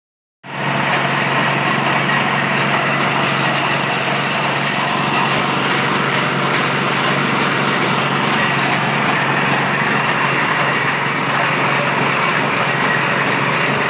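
A small petrol engine runs loudly and steadily nearby.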